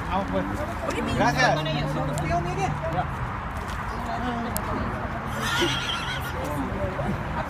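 Men and women talk close by, outdoors.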